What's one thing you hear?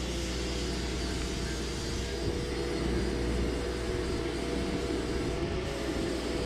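A small machine hums steadily close by.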